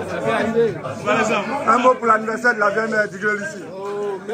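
A middle-aged man speaks close up, with animation.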